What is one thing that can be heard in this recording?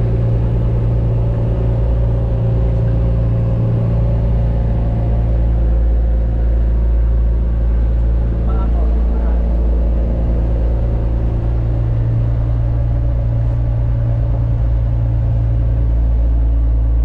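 Water churns and bubbles steadily in a tank.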